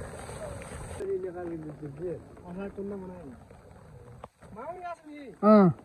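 A man calls out loudly to his oxen.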